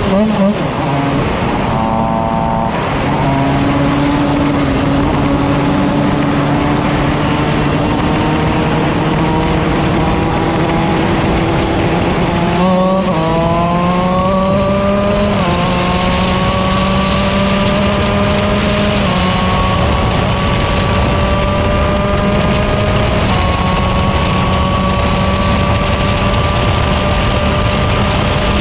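A kart engine buzzes loudly up close, its pitch rising and falling with speed.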